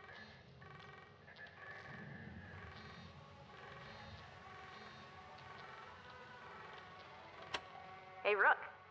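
An incoming call signal beeps repeatedly.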